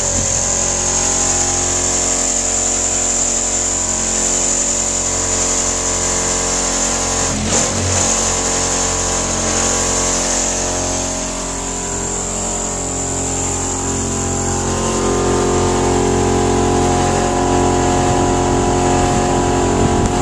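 A diesel engine runs with a steady, loud hum close by.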